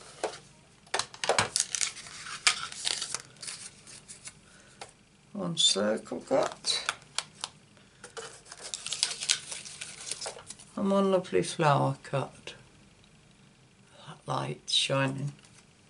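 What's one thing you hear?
Paper rustles as hands handle it.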